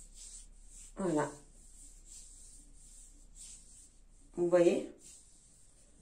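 A middle-aged woman speaks briefly and calmly close by.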